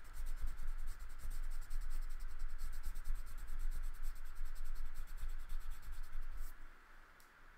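A crayon scratches rapidly back and forth on paper.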